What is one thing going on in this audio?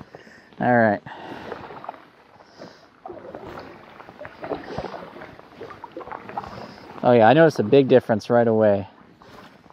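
A paddle splashes and dips in water.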